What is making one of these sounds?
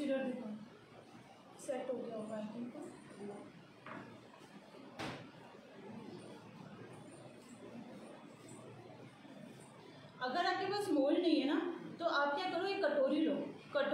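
A woman speaks calmly and close by, explaining.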